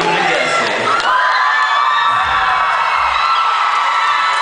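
A crowd cheers and whistles.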